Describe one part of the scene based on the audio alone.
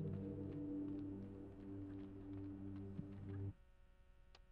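Quick footsteps patter as a child runs across a hard floor.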